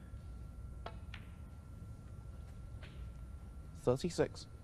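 Snooker balls knock together and roll across the table.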